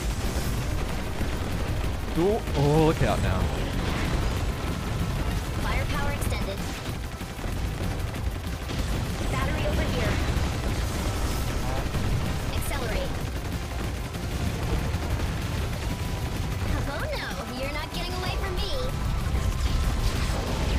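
Rapid gunfire and blasts crackle without pause.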